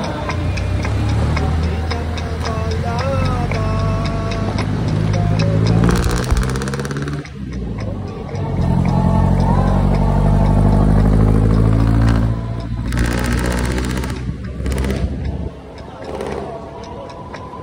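A motorcycle engine hums steadily and rises and falls in pitch as it speeds up.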